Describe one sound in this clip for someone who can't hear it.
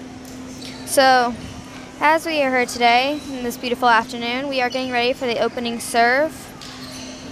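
Young women shout and chant loudly in an echoing gym.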